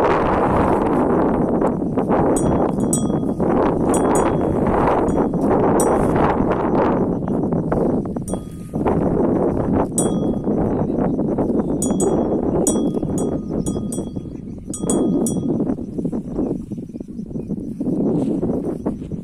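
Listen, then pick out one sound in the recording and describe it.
A cow tears and munches grass close by.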